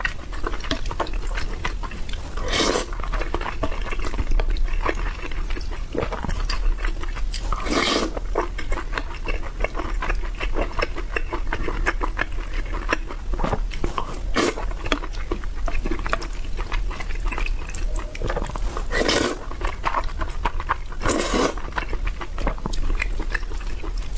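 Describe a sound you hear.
A young woman chews food noisily, close to a microphone.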